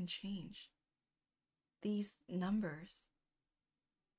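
A young woman speaks close to a microphone in short bursts.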